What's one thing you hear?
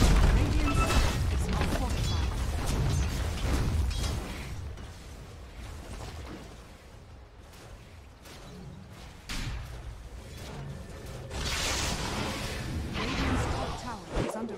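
Fiery spell blasts whoosh and crackle in a video game battle.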